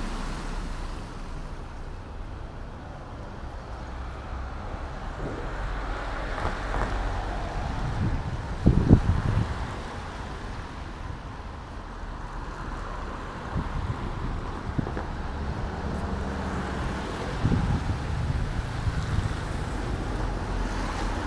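Car tyres swish over wet road as cars pass.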